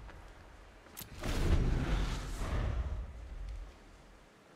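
A soft game whoosh sounds as the turn changes.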